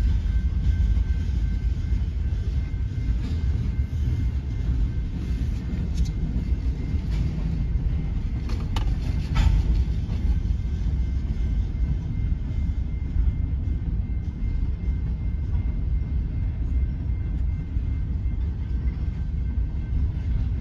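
A freight train rumbles steadily past up close.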